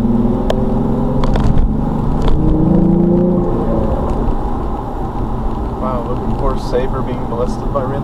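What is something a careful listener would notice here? A car engine hums steadily from inside the car as it drives along.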